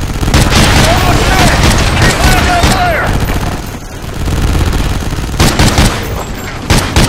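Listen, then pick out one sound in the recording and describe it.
Gunshots crack loudly, again and again.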